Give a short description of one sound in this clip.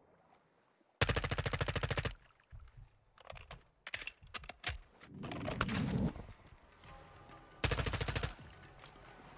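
A rifle fires in rapid automatic bursts.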